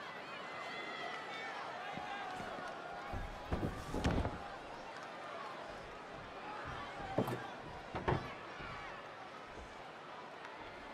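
A large crowd cheers and roars in an echoing arena.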